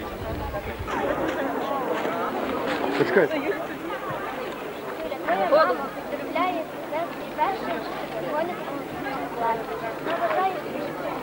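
A crowd of children and adults chatters outdoors.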